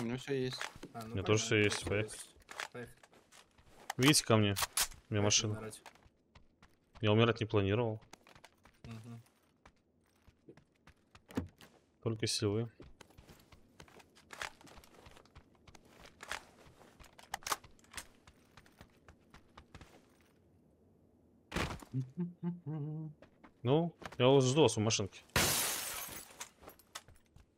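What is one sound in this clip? A man talks into a close microphone with animation, in short bursts.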